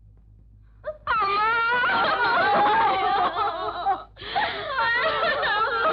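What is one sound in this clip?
A woman wails and sobs loudly in grief.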